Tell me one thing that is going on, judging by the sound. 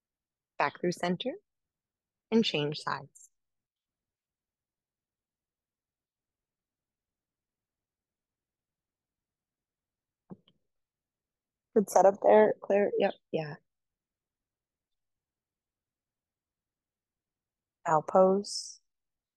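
A young woman speaks calmly and clearly into a close microphone, in short phrases with long pauses.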